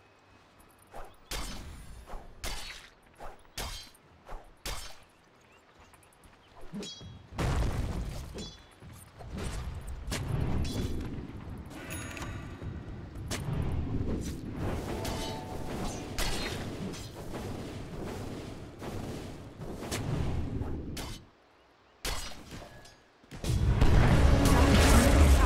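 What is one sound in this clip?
Video game spells crackle and boom as hits land.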